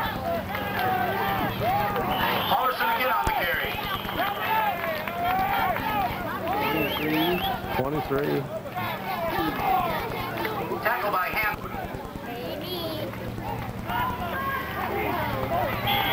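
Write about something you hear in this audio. Several teenage boys shout and call out outdoors.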